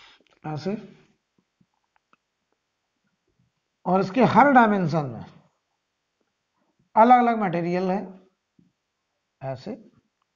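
A man speaks calmly in short phrases, like a teacher explaining.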